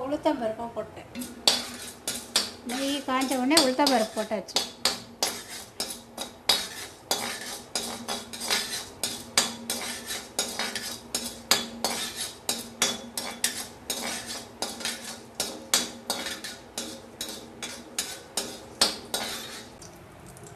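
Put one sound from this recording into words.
A metal spatula scrapes and taps against a wok.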